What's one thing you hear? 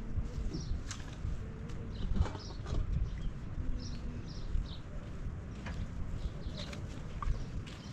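Footsteps crunch on dry dirt nearby.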